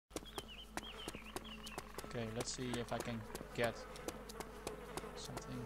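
Footsteps tap steadily on a paved sidewalk.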